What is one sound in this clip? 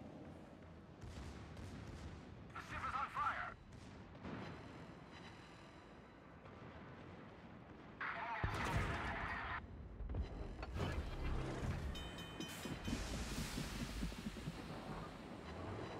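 Heavy ship guns fire with deep booms.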